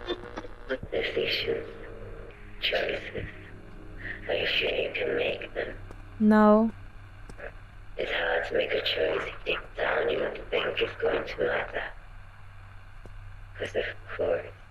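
A young woman talks calmly into a close microphone.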